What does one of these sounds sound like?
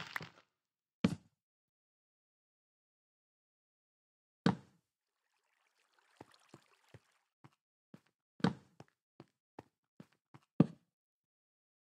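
A block thuds into place.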